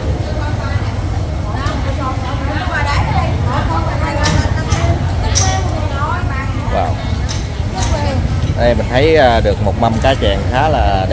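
Women chat with animation nearby.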